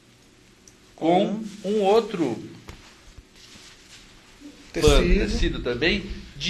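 A man speaks with animation into a nearby microphone.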